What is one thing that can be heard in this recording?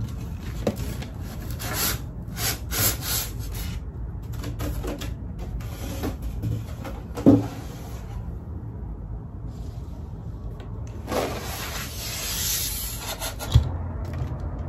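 Cardboard scrapes and knocks as a panel is lifted from a box.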